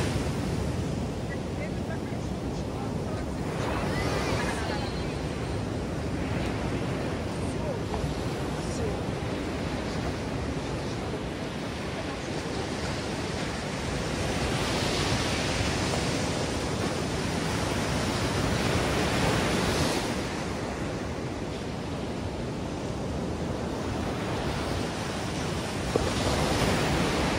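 Waves break and wash up on the shore close by.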